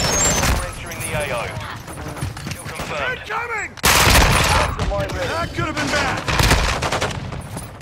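Explosions boom.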